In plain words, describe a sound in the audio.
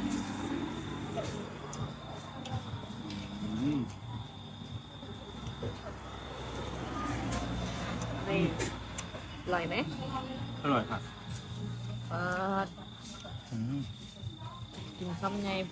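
A young man chews and slurps food.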